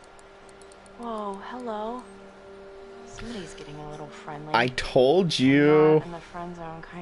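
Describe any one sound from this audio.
A young woman speaks quietly and teasingly, close by.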